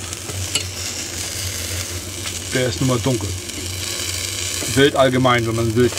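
A metal fork scrapes against a grill grate.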